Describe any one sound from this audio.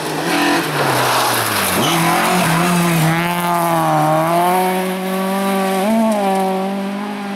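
Gravel sprays under a car's tyres.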